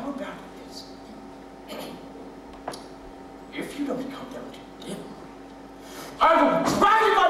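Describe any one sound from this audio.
A man speaks in a low, gruff voice.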